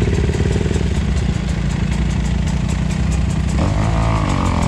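A dirt bike engine idles close by with a steady rumble.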